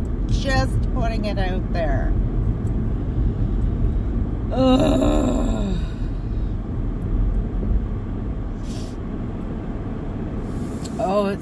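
A car engine hums steadily in the background.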